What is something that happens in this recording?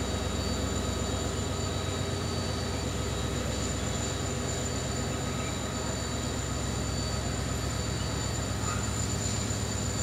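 A train engine idles with a steady low hum.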